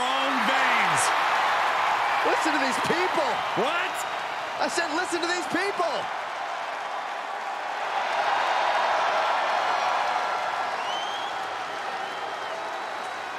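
A large crowd cheers and roars throughout.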